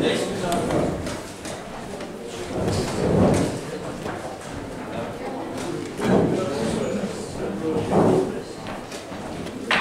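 Wooden chess pieces tap on a board.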